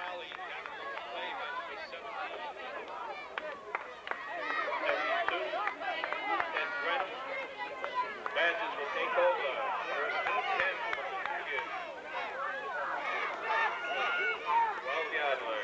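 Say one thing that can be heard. A crowd of spectators chatters and calls out nearby outdoors.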